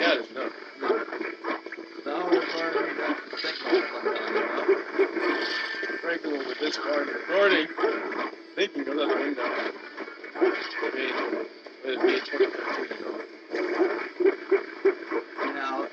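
Blasts and crashing impacts burst out again and again.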